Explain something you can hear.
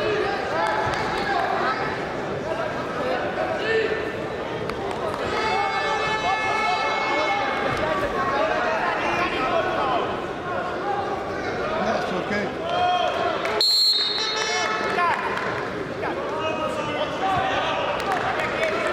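Spectators shout and call out in a large echoing hall.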